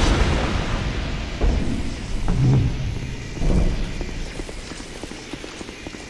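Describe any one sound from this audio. Heavy stone doors grind open.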